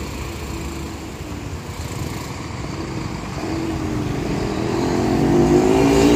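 A motorcycle engine hums as it rides past.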